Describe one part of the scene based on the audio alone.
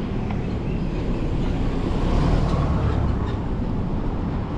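A heavy truck drives by close and loud.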